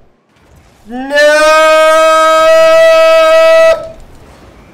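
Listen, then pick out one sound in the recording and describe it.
A young man shouts a long, drawn-out cry.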